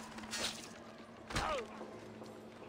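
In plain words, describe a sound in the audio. A blade stabs into flesh with a sharp thud.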